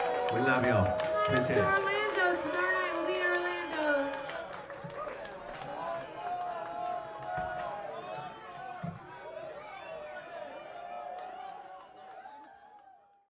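A live band plays loudly.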